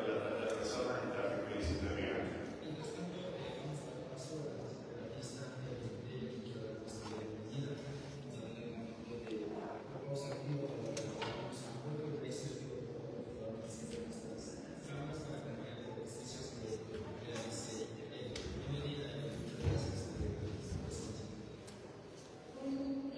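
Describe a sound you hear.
A man speaks steadily over a loudspeaker in a large echoing hall.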